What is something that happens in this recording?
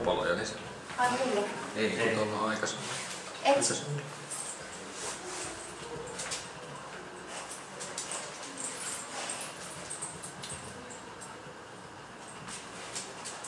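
A dog sniffs at the floor close by.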